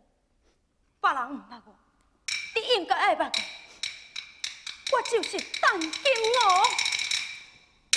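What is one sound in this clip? A woman sings in a clear, high opera voice with feeling.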